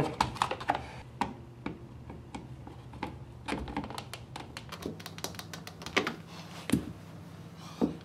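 A screwdriver scrapes and clicks as a screw is tightened.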